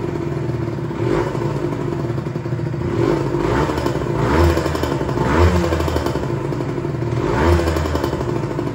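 A two-stroke sport bike is blipped in short revs.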